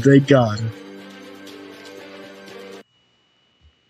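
A short burst of closing music plays and cuts off abruptly.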